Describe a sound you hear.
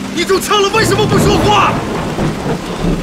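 A man speaks in a low, strained voice close by.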